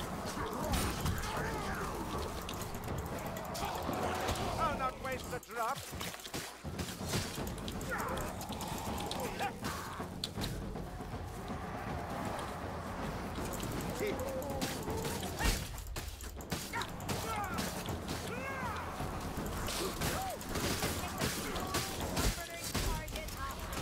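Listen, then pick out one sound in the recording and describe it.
Heavy blades slash and thud into flesh in rapid blows.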